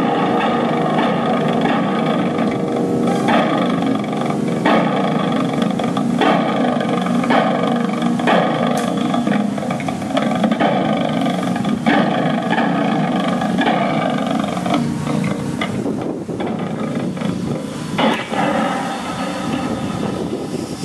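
An electric guitar plays a steady, strummed tune through an amplifier outdoors.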